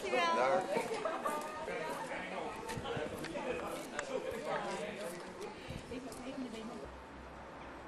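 Several people walk with footsteps on pavement.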